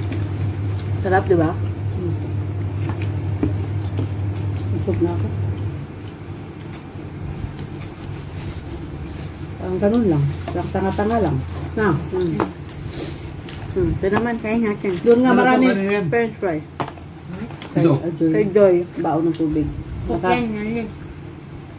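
A young woman chews and munches on food.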